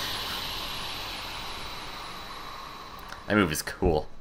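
A magical blast whooshes and roars, then slowly fades.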